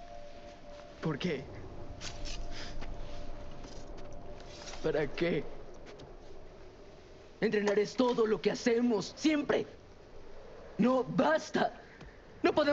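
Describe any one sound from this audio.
A boy speaks quietly.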